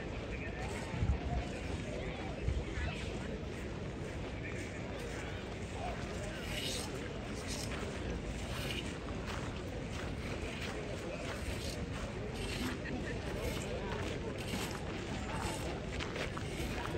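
Outdoors in light wind, a crowd of people chatter all around.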